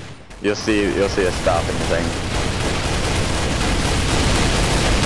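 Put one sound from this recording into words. A helicopter's rotor thumps and its engine drones nearby.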